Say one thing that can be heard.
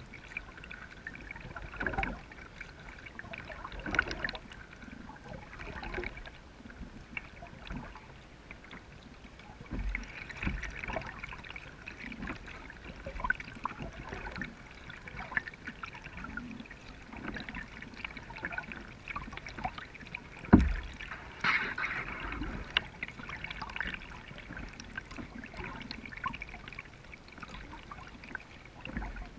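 A kayak paddle dips and splashes in calm water.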